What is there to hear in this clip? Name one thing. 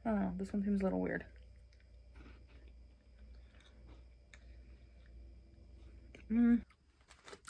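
A young woman crunches on a snack while chewing.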